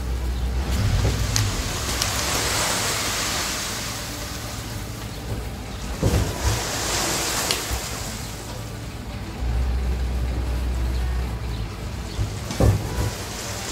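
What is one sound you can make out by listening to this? Stones knock against the metal of a truck bed.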